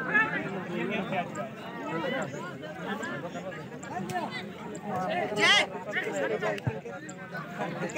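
A crowd of young women and girls chatter and call out across an open field.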